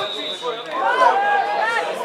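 A man shouts from the sideline.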